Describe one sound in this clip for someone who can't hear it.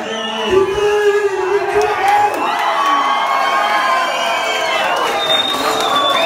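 A dense crowd of people talks and shouts loudly nearby.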